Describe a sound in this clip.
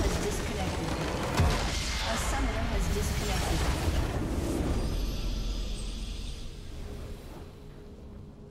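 A loud magical blast bursts and crackles.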